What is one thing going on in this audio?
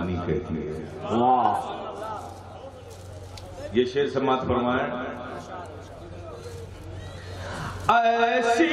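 An elderly man sings through a microphone and loudspeakers, in a melodic chanting voice.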